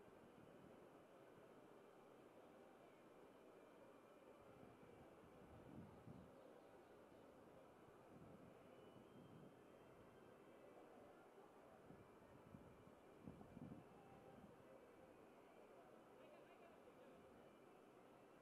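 A crowd murmurs softly in a large open space.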